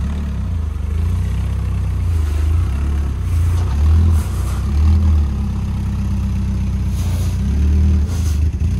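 A small truck engine idles with a low, uneven rumble and revs up now and then.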